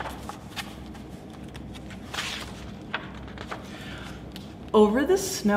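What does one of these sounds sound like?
Book pages rustle and flip.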